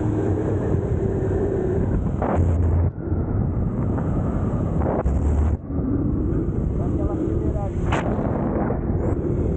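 A motorcycle engine hums and revs as it rides along.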